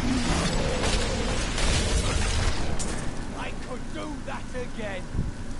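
Skeleton warriors clatter as they swing their weapons.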